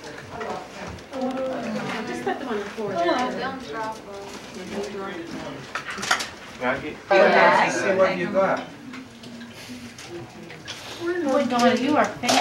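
Several men and women talk and laugh close by.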